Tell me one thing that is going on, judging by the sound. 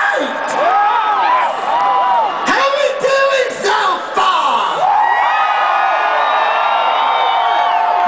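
A man sings loudly through loudspeakers in a large echoing arena.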